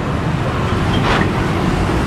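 A bus drives past close by.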